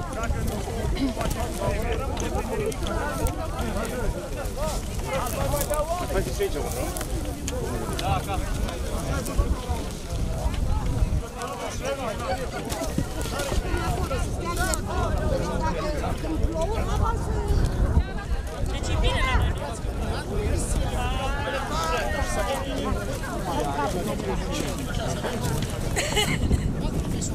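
Several men and women talk and call out nearby outdoors.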